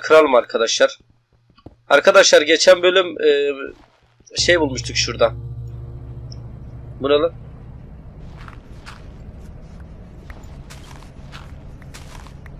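A pickaxe chips and crunches through dirt and stone.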